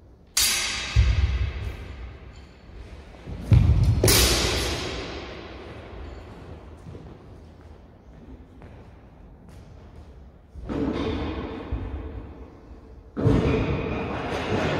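Footsteps thud and shuffle on a wooden floor.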